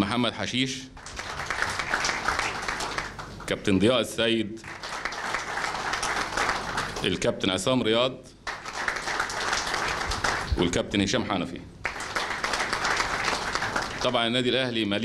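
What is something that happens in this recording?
A crowd applauds loudly in bursts.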